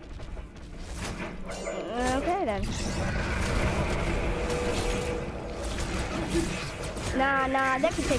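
Game weapons strike and blasts boom in a close fight.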